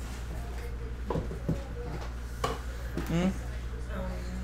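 Cardboard boxes knock and scrape as they are moved.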